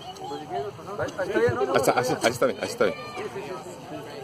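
Several people talk over each other nearby.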